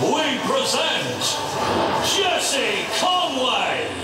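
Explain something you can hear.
Smoke jets hiss in bursts.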